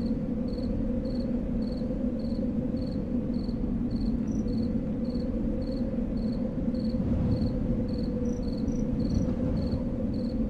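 Footsteps tap steadily at an even pace.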